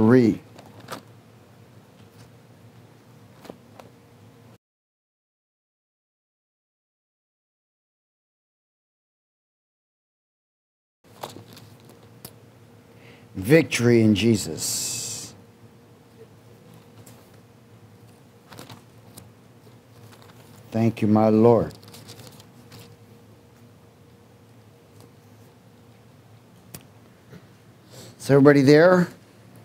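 A man reads aloud calmly through a microphone, in short bursts with long pauses.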